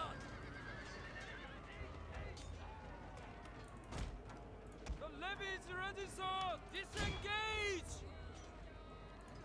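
Swords and spears clash and clatter in a battle.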